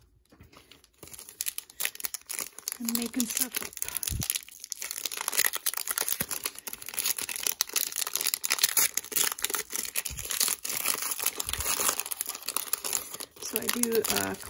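A foil wrapper crinkles and tears as it is ripped open.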